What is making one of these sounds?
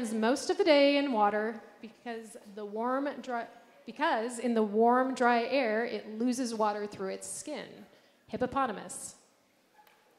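A woman speaks clearly and calmly.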